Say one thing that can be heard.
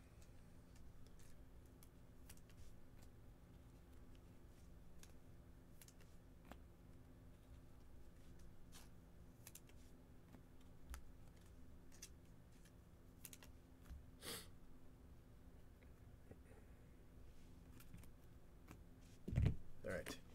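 Cards in plastic sleeves tap and click softly.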